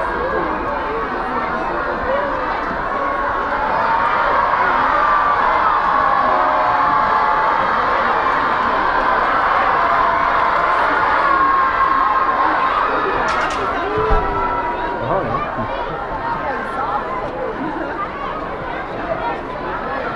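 A large outdoor crowd of men and women chatters and shouts.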